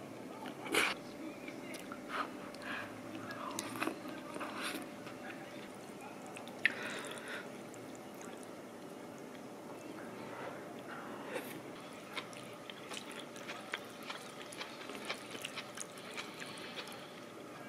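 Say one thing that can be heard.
Chopsticks click against a ceramic bowl.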